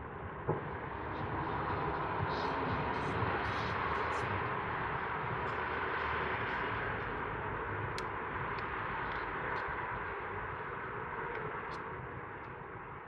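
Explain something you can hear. Fireworks crackle and fizz far off.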